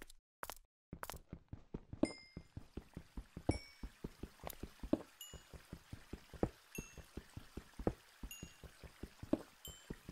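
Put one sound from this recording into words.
A pickaxe strikes and chips at stone in quick, repeated knocks.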